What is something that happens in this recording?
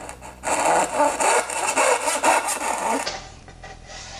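A hand saw cuts through wood with quick rasping strokes.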